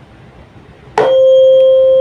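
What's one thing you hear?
A mallet strikes a tuning fork with a sharp tap.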